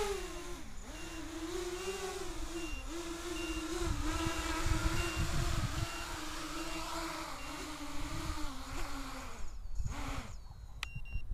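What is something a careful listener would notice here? A small drone's motors whine steadily, close by.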